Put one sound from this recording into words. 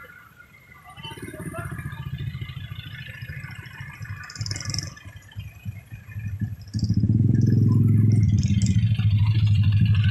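Vehicles drive past close by with a low engine rumble.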